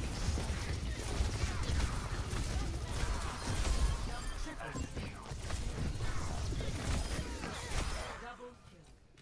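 Sudden blasts and impacts ring out.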